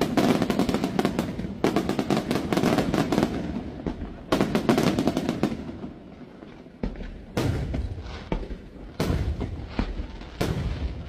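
Fireworks burst with loud booms and rapid crackling outdoors.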